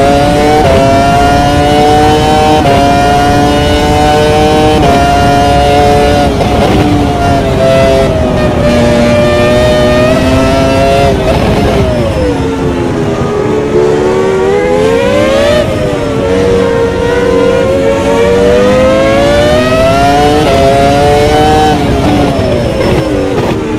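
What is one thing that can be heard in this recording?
A racing car engine screams at high revs, climbing through the gears and dropping as it brakes.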